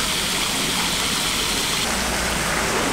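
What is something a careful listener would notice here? Water boils hard in a large pot.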